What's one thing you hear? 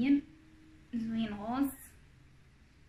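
A woman speaks briefly and calmly close by.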